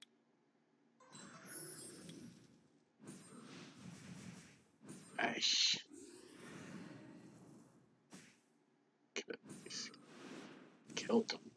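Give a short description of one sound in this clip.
Magic spells whoosh and burst in short blasts, one after another.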